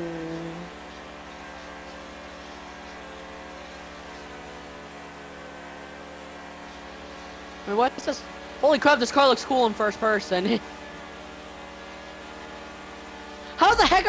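A racing car engine roars steadily at high speed.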